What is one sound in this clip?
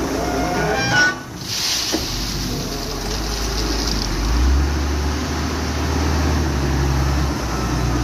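Gravel and sand pour from a loader's bucket.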